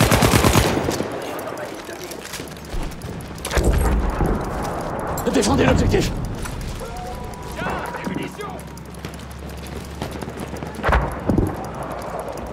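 Gunshots crack sharply in bursts at close range.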